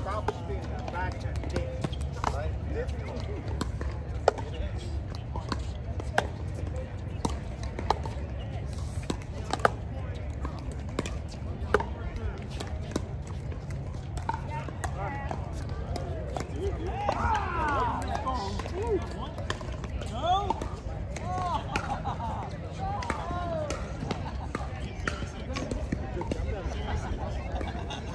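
Paddles sharply knock a plastic ball back and forth.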